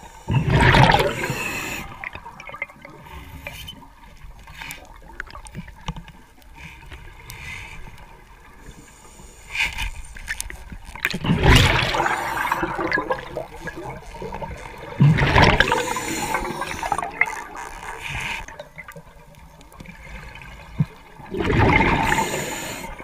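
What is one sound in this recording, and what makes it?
Air bubbles rush and gurgle out of a diver's breathing gear underwater, in bursts.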